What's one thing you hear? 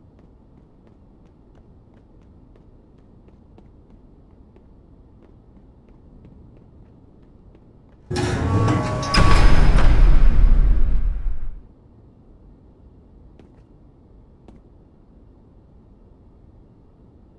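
Footsteps tread softly on a wooden floor.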